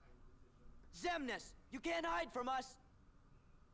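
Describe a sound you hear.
A young man shouts with determination.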